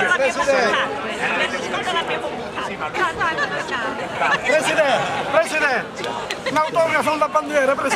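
A woman laughs and calls out excitedly nearby.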